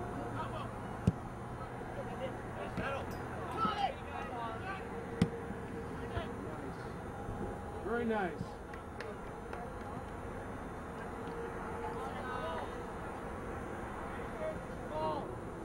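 Men and women nearby shout and cheer outdoors.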